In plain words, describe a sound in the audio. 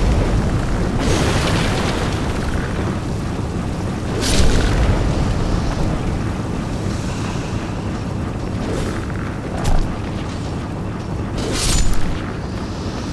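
A sword swings and strikes with a sharp slash.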